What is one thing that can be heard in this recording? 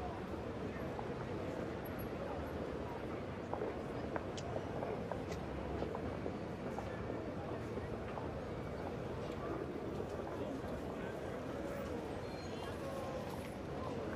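Footsteps tap on stone as men walk.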